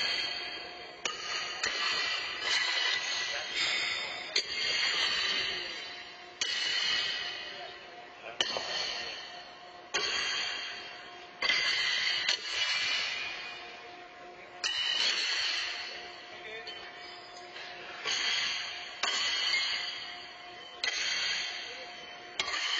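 Horseshoes clang against steel stakes, ringing in a large echoing hall.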